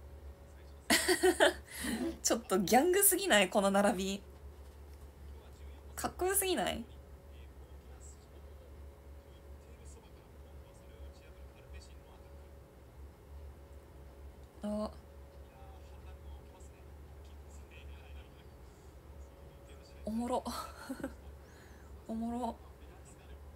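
A young woman speaks and laughs softly close to a microphone.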